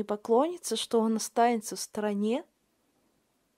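A woman speaks expressively, close up.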